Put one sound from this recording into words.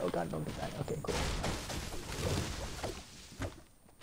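A pickaxe strikes wood with sharp knocks.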